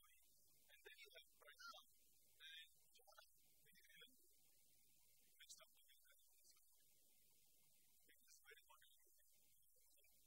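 A man speaks calmly in a lecturing tone.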